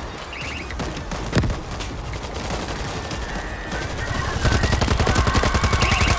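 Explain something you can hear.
A horde of creatures growls and shrieks.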